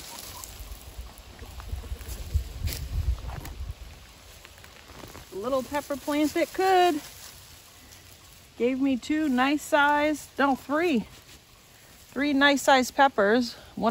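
Dry leaves rustle as a plant is shaken and pulled.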